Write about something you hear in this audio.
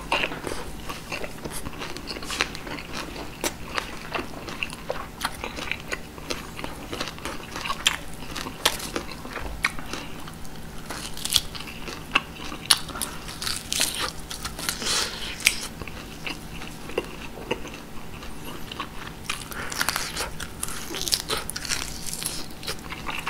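A man chews food loudly and wetly, close to a microphone.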